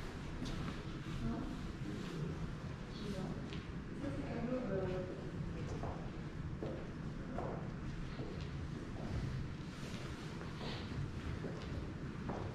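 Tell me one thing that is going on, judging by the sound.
A few adult visitors murmur softly in a large, echoing room.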